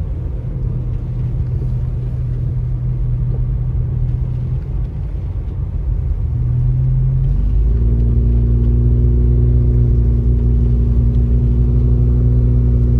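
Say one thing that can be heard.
A car engine hums steadily from inside the car, rising in pitch as it speeds up.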